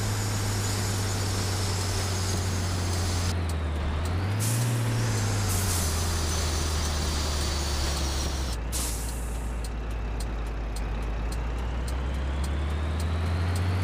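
A truck engine hums low and steady, its pitch rising and falling as the truck slows.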